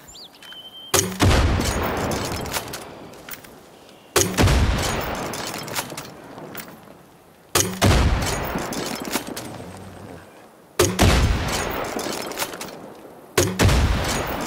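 Explosions blast and rumble away.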